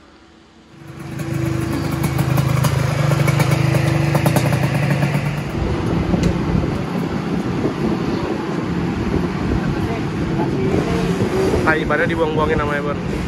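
A motorcycle engine runs loudly nearby.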